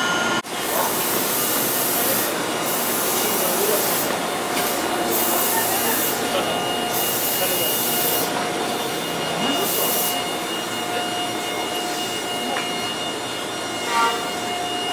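A parked train hums steadily nearby.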